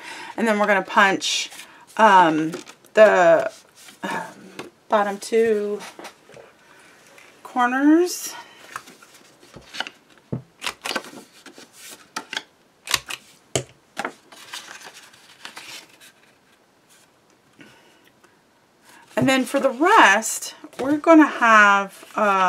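Sheets of card rustle and tap as they are handled.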